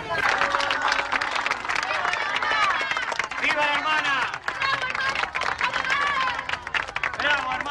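A crowd cheers and chatters excitedly.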